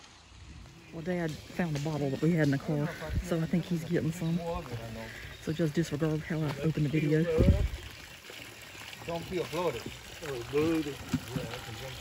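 An elderly man talks calmly nearby outdoors.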